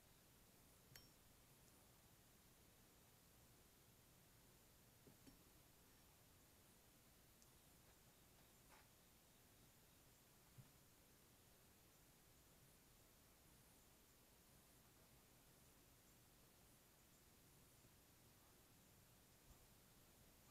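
Metal parts clink softly as they are set down on wood.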